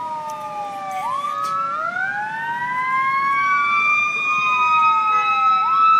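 A vehicle fire roars and crackles.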